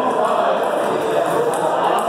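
A ping pong ball clicks back and forth on a table.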